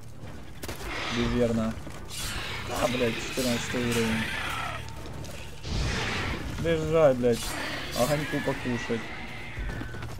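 A large creature screeches and shrieks repeatedly.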